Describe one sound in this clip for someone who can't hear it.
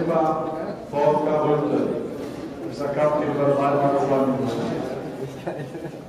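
A man speaks loudly, with echo in a large hall.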